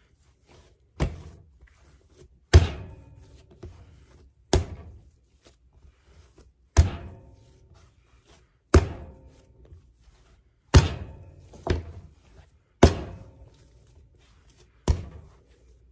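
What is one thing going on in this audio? Dough slaps down hard onto a surface at regular intervals.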